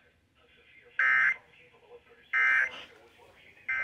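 A radio gives out short, loud alert beeps.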